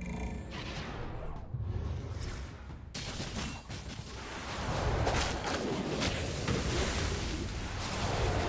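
Game battle sounds clash and crackle.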